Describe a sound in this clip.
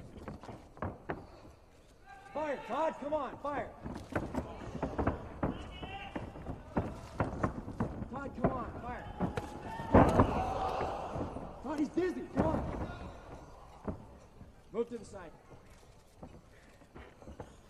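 Wrestlers' feet thump and slap on a canvas mat.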